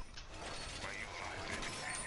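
A metal wall reinforcement clanks into place.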